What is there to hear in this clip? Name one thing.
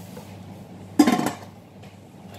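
A metal pot lid clangs onto a pot.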